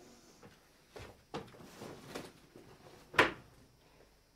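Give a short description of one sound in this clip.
Footsteps thud on a wooden stage floor.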